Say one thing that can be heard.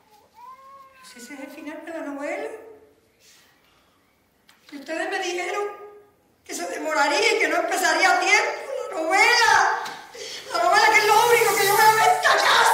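An older woman speaks loudly and with animation nearby.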